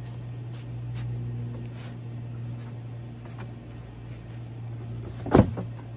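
A cardboard box rustles as a man moves it.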